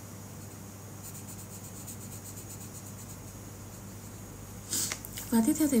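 A colored pencil scratches softly across paper.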